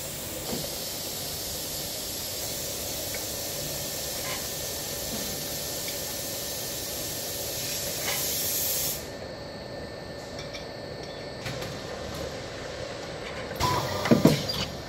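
Metal cans clink and clatter as a machine moves them along.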